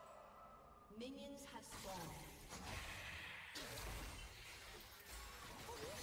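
Magic spell effects whoosh and crackle in a fight.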